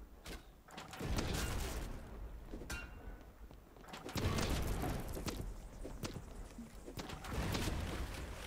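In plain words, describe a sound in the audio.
A cannon fires with a deep boom.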